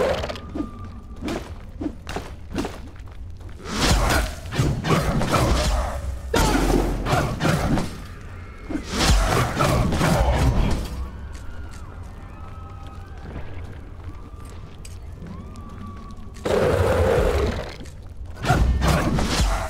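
Blade slashes and hits land in quick bursts.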